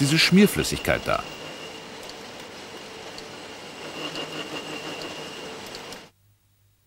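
A metal cutting tool scrapes steadily against metal.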